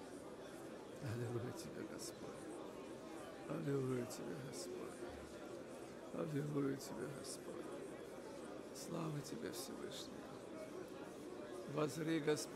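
A man speaks slowly and calmly over a loudspeaker.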